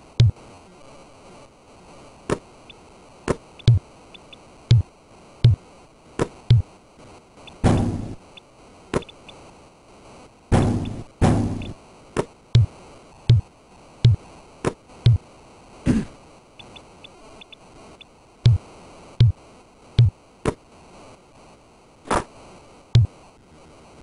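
A basketball bounces repeatedly on a hard court.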